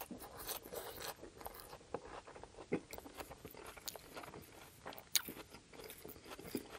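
A man chews food wetly and loudly, close to a microphone.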